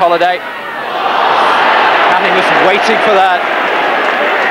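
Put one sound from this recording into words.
A crowd roars loudly in a stadium.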